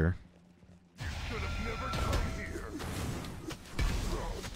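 Video game weapons clash and swoosh with fighting effects.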